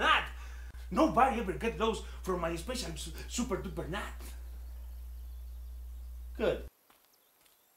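A second man talks back calmly.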